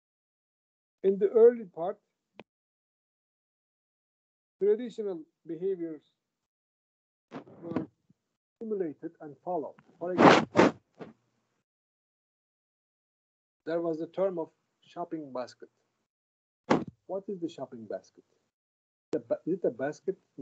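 A middle-aged man speaks calmly in bursts over an online call.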